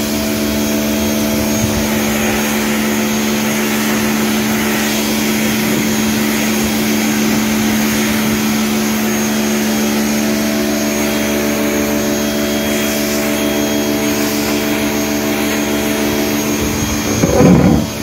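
A jet of water sprays hard against a tiled floor.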